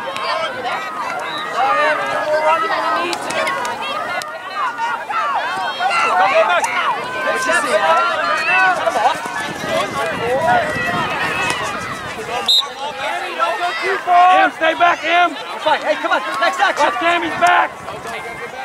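A crowd of adults and children shout and cheer outdoors.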